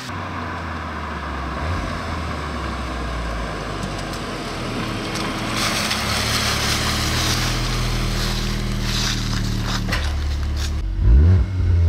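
Tyres roll over the road and crunch on leaves.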